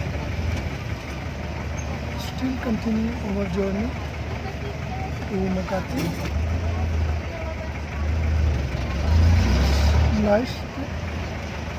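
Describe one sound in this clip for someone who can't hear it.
A jeepney's diesel engine rumbles as it drives through stop-and-go traffic.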